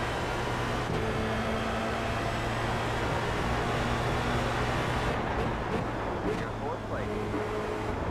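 A racing car engine drones loudly at high revs.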